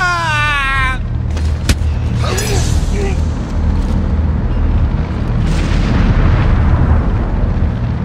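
Heavy blows thud in a brief scuffle.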